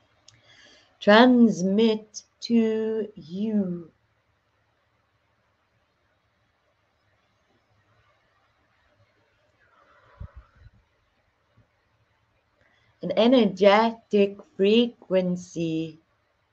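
A woman speaks calmly and expressively into a microphone, close by, pausing between phrases.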